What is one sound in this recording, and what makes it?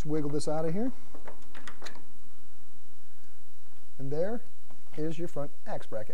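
A loose metal bracket clinks as it is pulled off.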